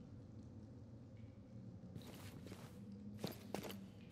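Footsteps tread on a hard stone floor.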